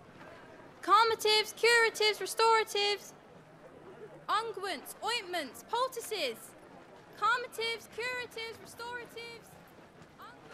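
A young woman calls out loudly, hawking her wares.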